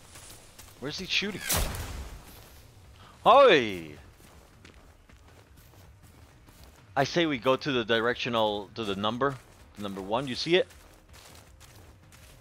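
Footsteps tread softly on a dirt path.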